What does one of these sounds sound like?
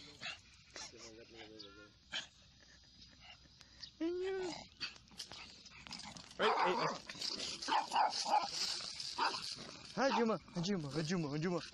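Small dogs whine and yelp.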